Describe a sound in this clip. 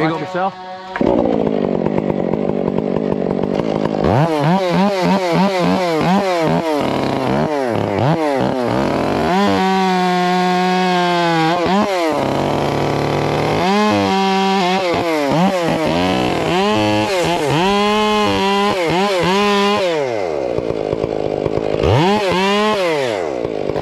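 A chainsaw roars loudly, revving up and down as it cuts into a tree.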